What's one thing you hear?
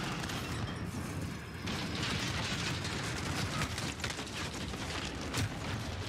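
Rapid gunshots crack in bursts.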